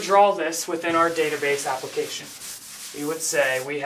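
A cloth wipes across a chalkboard.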